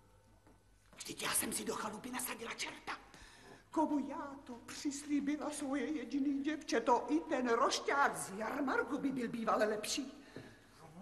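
A middle-aged woman speaks in a distressed, tearful voice close by.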